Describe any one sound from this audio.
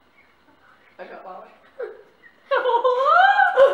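Two teenage boys laugh loudly close by.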